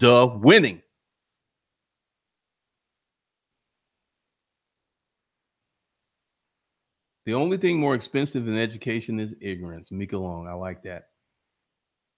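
A man speaks calmly and close into a microphone, with pauses.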